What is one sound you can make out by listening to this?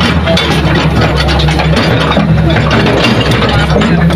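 Dirt and rocks tumble from an excavator bucket into a truck bed.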